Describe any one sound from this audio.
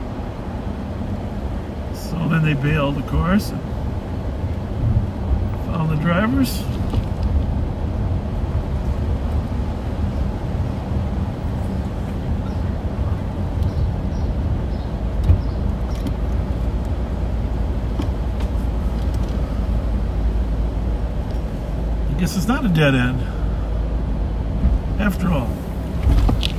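A car engine hums and tyres rumble on the road, heard from inside the car.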